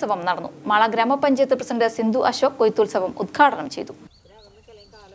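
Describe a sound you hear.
A young woman speaks clearly and steadily into a microphone.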